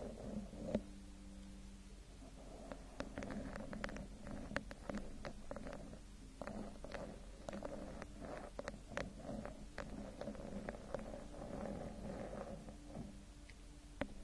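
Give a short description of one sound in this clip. A young woman whispers softly and closely into a microphone.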